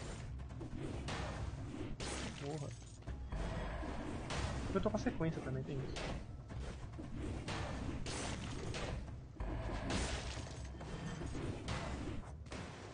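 Sword slashes and hits ring out in quick bursts.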